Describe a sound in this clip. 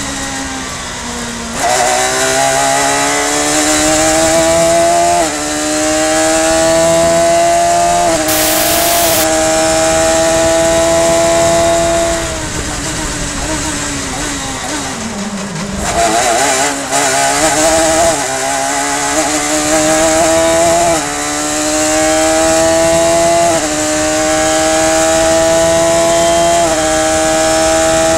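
A racing car engine roars at high revs, rising in pitch and dropping sharply with each gear change.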